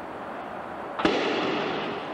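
A starting pistol fires once, sharply.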